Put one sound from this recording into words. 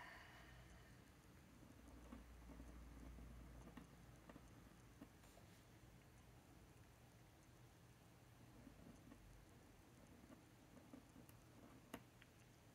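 A pen nib scratches softly on paper.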